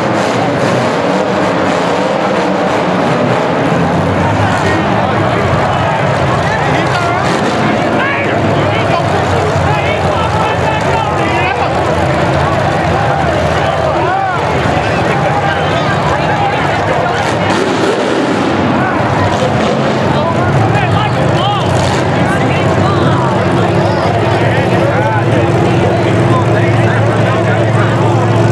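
Car engines roar and rev loudly in a large echoing arena.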